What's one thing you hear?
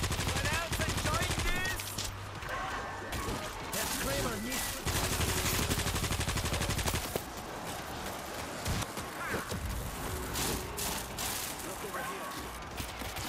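Zombies snarl and growl nearby.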